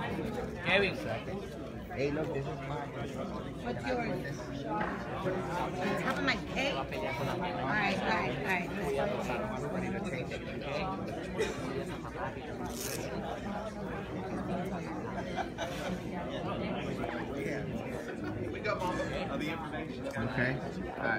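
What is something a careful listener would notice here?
A crowd of people chatters throughout in a large echoing hall.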